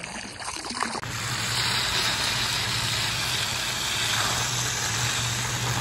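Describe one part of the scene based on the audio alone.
A hose sprays water hard against a pool filter.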